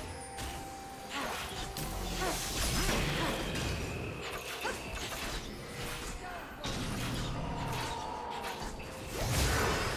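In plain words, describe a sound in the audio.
Video game combat effects whoosh, clash and burst.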